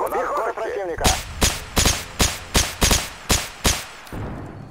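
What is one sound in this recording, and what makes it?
A rifle fires a quick series of loud shots.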